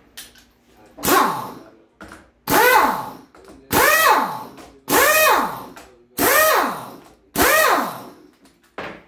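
A pneumatic impact wrench whirs in short, loud bursts.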